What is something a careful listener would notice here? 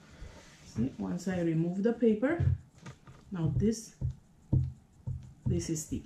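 Fabric rustles as a hand smooths it flat.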